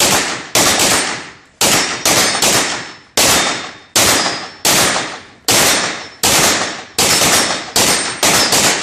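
Pistol shots ring out in quick bursts, echoing loudly in a large indoor hall.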